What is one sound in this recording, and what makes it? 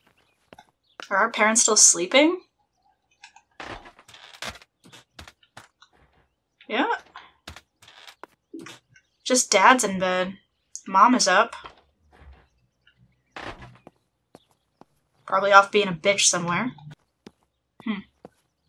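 A young woman talks into a close microphone in short bursts, with animation.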